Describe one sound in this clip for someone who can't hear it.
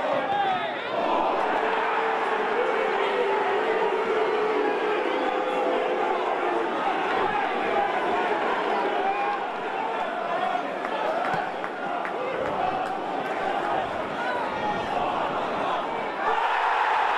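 A large stadium crowd chants and sings loudly.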